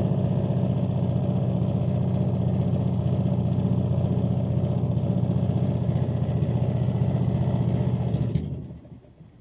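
A boat engine drones steadily close by, then cuts off.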